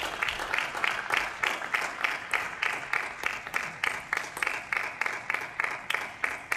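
A ping-pong ball clicks quickly back and forth off paddles and a table in a large echoing hall.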